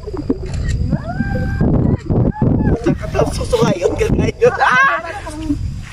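Two young women talk and laugh with animation close by.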